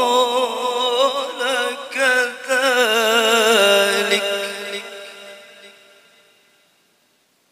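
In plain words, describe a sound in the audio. A man chants in a drawn-out, melodic voice through a microphone, then fades away.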